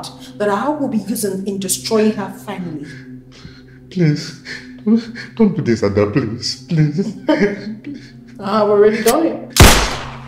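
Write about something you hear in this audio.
A man speaks in a low, menacing voice close by.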